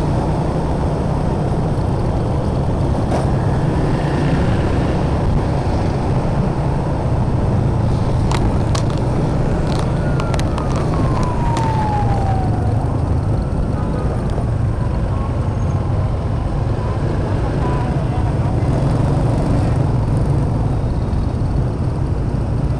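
Motorbike engines hum steadily in busy traffic all around.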